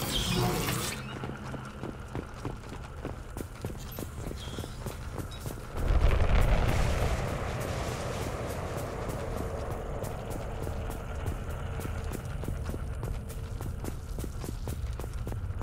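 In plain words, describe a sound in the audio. Heavy footsteps run quickly over the ground.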